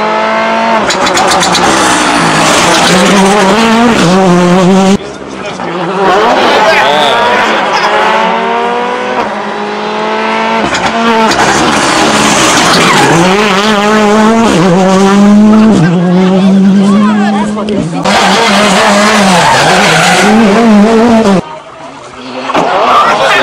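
A rally car engine roars loudly, its pitch climbing and dropping sharply with each gear change.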